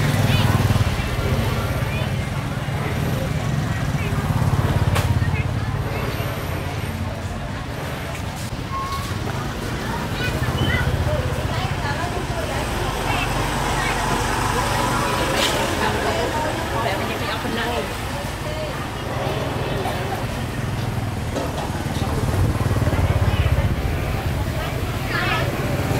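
A motorbike engine hums as it rides past nearby.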